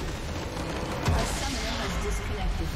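A crystal structure explodes with a loud boom.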